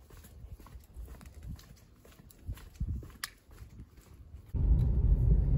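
Footsteps scuff on concrete steps outdoors.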